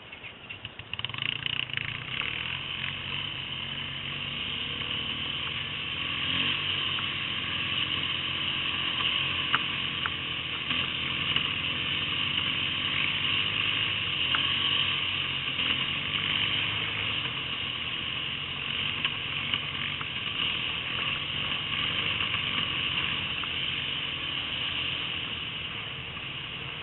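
A quad bike engine drones under throttle along a dirt track.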